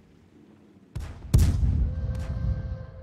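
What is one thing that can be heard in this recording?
An explosion booms with a sharp crack.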